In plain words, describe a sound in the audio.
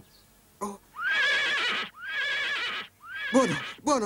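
A horse neighs loudly.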